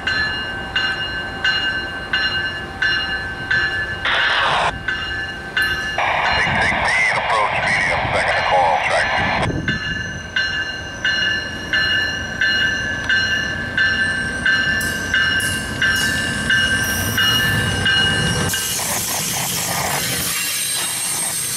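A train engine rumbles nearby as the train slowly pulls away.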